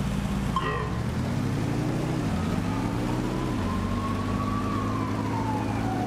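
A race car engine revs up and roars, rising and falling in pitch.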